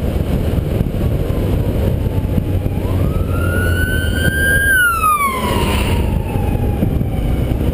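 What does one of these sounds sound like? A fire truck siren wails nearby, rising and then falling in pitch as it passes.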